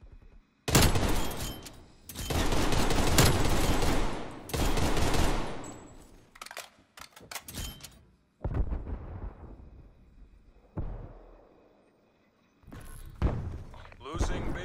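Rifle shots crack loudly, one after another, each with a long echoing tail.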